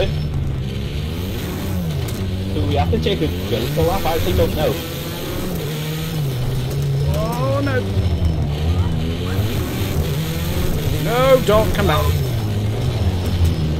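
A racing car engine roars steadily, rising and falling in pitch as the car accelerates and shifts gears.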